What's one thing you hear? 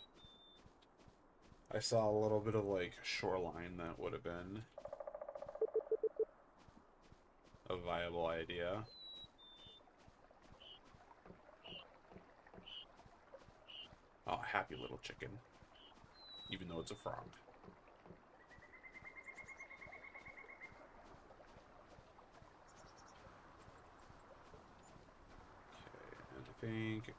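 Footsteps patter softly on a dirt path.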